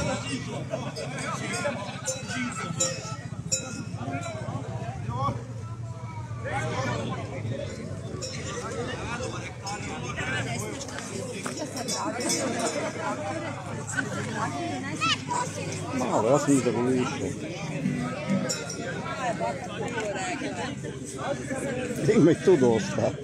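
A crowd of men and women chatters outdoors a short way off.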